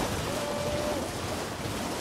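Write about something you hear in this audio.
Water splashes under a galloping horse's hooves.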